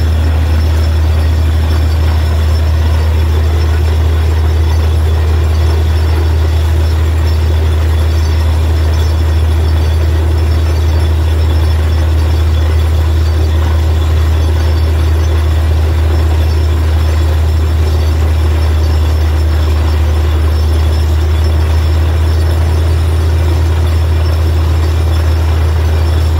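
Water and mud gush and splash from a borehole.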